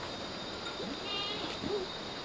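Chickens cluck softly.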